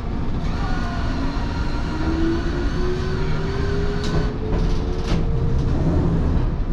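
A train motor whines, rising slowly in pitch.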